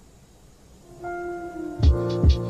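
Music plays from a small speaker.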